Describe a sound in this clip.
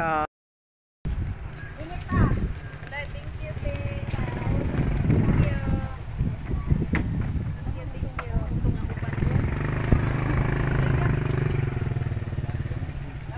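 A motorbike engine rumbles close by.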